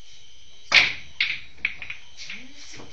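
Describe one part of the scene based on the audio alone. Pool balls clack together and roll across the table.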